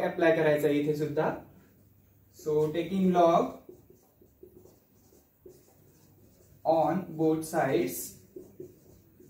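A young man speaks calmly and clearly, close by, pausing between phrases.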